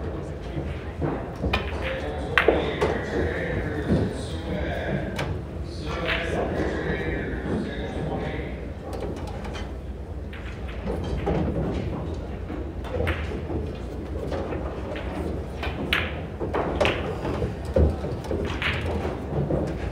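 Pool balls click sharply as a cue strikes them and they collide.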